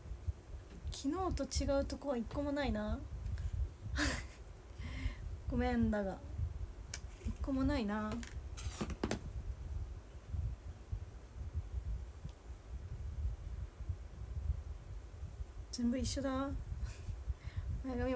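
A young woman speaks softly and close by.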